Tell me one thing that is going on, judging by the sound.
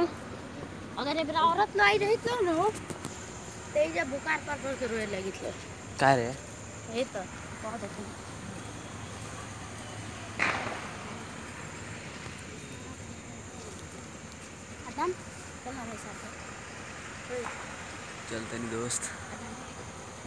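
A young woman talks and laughs with animation close by.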